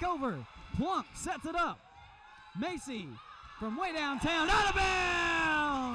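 A volleyball is struck with a firm slap.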